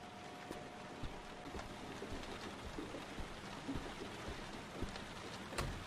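Footsteps thud slowly across a wooden floor.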